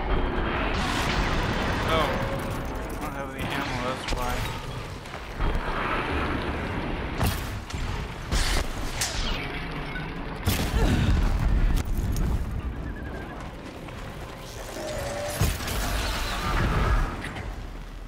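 Icy blasts burst with a crackling hiss.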